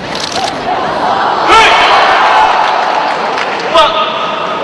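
A large indoor crowd cheers loudly after a takedown, echoing in the arena.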